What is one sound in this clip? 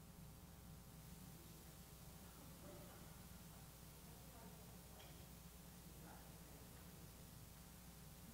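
A woman's footsteps cross a wooden floor.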